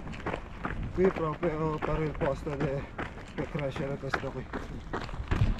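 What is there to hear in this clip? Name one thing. A man speaks briefly, slightly out of breath.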